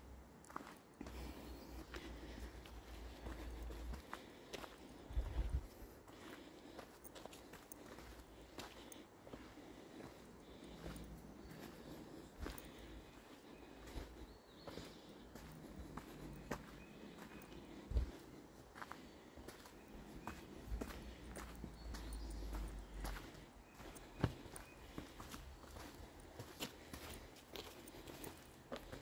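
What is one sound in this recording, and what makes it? Footsteps crunch on a dirt trail at a steady walking pace.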